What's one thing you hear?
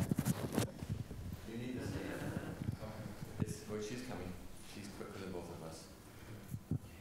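A woman speaks calmly into a microphone in an echoing hall.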